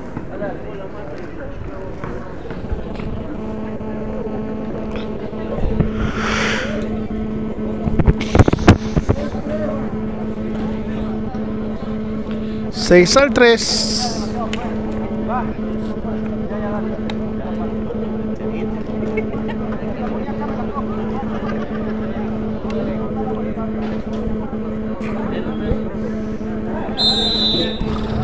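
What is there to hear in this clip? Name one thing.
Spectators chatter and call out at a distance outdoors.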